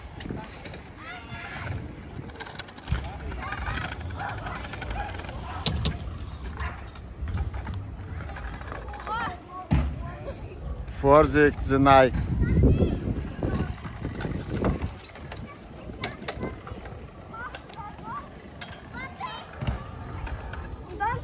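Children's voices chatter and call out nearby, outdoors.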